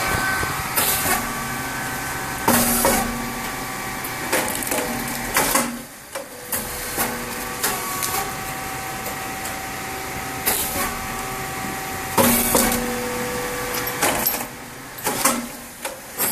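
A grain-cake popping machine hums with a steady electric tone.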